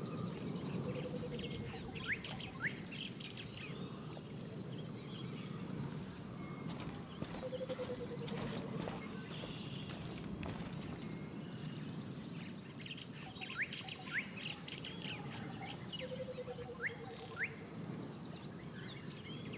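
Birds chirp and call overhead.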